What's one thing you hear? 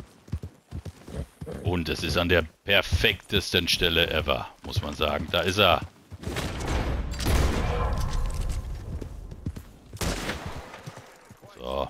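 A horse's hooves thud on grass as it trots.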